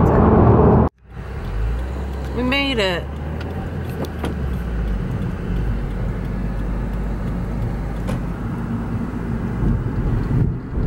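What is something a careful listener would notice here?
A car engine hums and tyres rumble on the road while driving.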